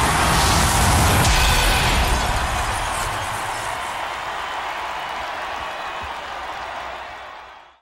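A large crowd cheers and roars, slowly fading.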